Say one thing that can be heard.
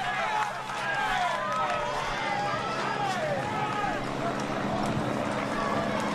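A crowd of spectators cheers and shouts close by.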